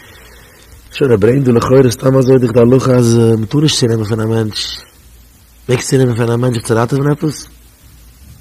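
A man speaks calmly and expressively into a microphone, close by, with pauses.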